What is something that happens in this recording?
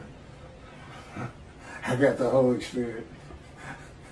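A middle-aged man laughs.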